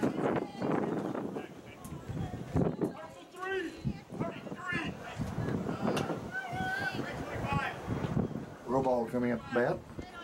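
Spectators shout and cheer from the stands outdoors.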